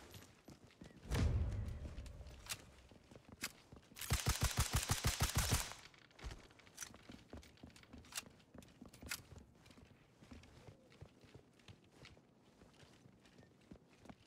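Footsteps thud on floors and stairs.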